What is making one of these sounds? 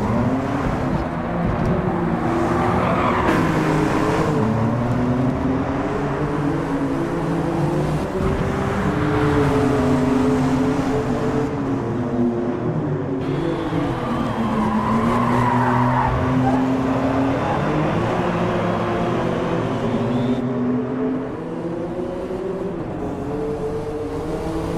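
A car engine revs and drones steadily, rising and falling in pitch.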